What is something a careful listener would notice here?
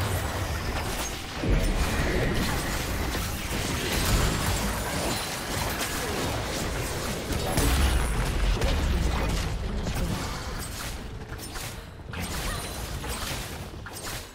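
Game spells blast and crackle in rapid bursts during a fight.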